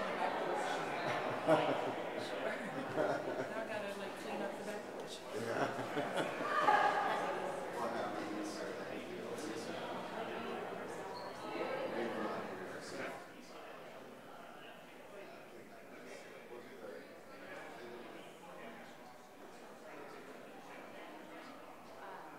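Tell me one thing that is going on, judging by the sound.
Several men and women chat quietly at a distance in a large echoing hall.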